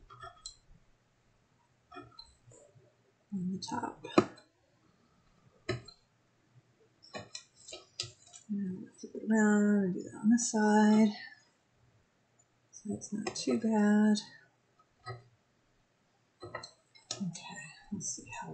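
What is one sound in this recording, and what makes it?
Stiff card crinkles and taps.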